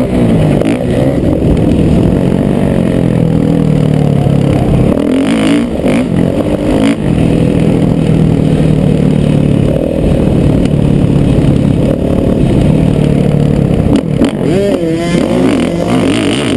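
A dirt bike engine revs and roars.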